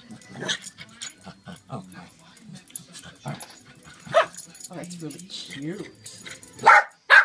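Small dogs growl and whine as they play.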